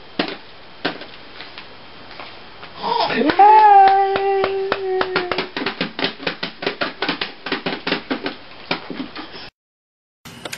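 A baby taps rapidly on a plastic toy drum.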